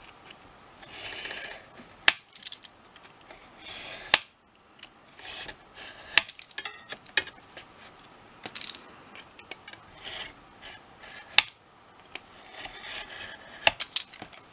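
A craft knife scores along a metal ruler on card with soft scraping strokes.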